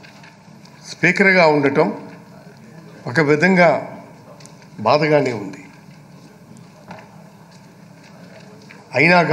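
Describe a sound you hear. A middle-aged man speaks loudly in short bursts through a microphone.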